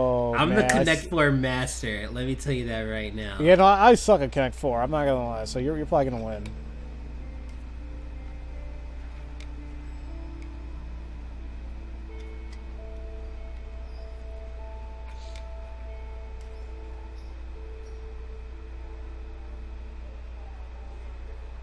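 Plastic game discs clatter as they drop into a slotted frame.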